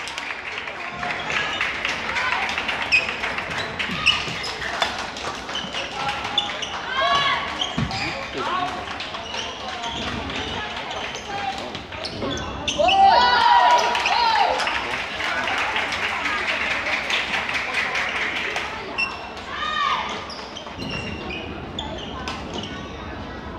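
Badminton rackets strike a shuttlecock with light pops in an echoing hall.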